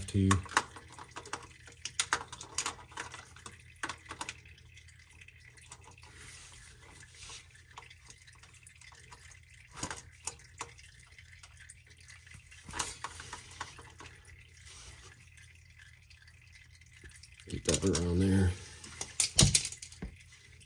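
A metal wrench clinks and clicks against metal up close.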